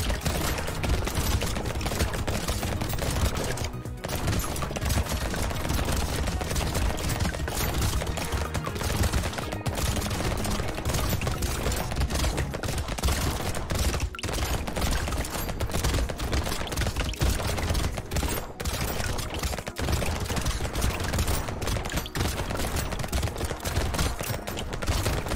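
Game enemies burst with squelching pops.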